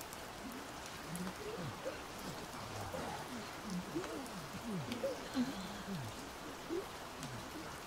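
A man sings softly into a microphone.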